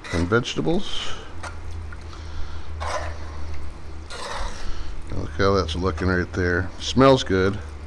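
A metal spoon scrapes and stirs food in a pot.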